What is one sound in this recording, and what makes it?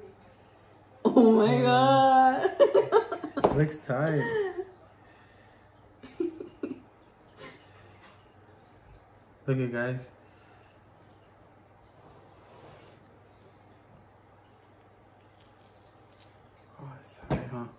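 A young man laughs nearby.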